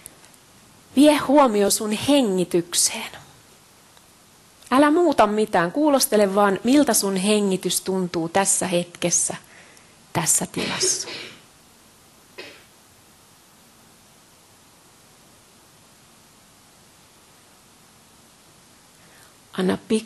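A woman speaks calmly through a microphone, pausing between phrases.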